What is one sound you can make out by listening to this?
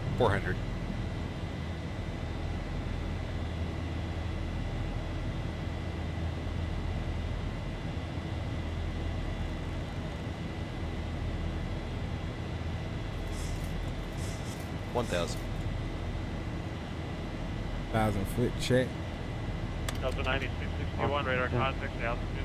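Jet engines hum steadily in a low drone.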